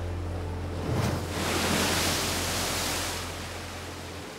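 Waves crash against rocks.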